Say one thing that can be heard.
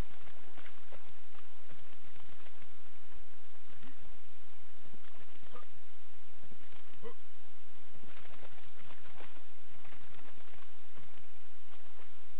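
A creature splashes loudly while leaping out of water.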